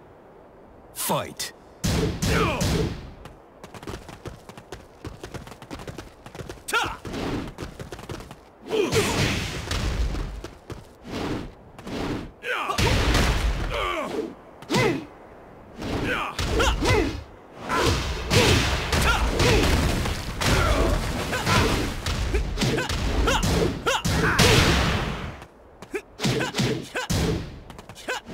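Punches and kicks land with heavy thuds and sharp cracks.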